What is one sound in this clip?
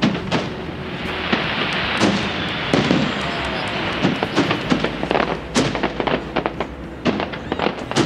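Fireworks crackle and fizz as they burst.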